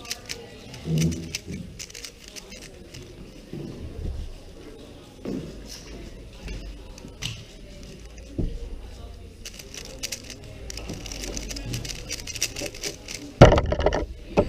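A puzzle cube clicks and rattles as it is turned quickly by hand.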